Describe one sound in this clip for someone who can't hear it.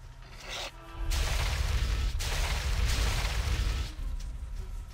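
A magic blast crackles and roars with a low rumble.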